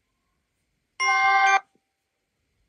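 A game plays a short bright chime.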